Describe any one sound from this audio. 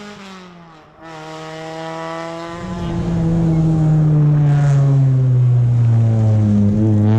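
Another rally car engine approaches loudly.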